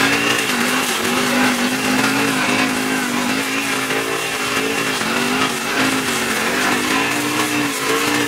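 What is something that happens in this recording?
Petrol brush cutter engines whine steadily close by, rising and falling in pitch.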